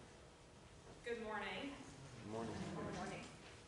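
A woman speaks into a microphone, heard through loudspeakers in an echoing hall.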